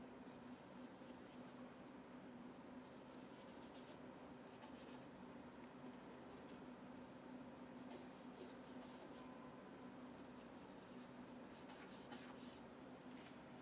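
A pencil scratches and rustles on paper in short bursts.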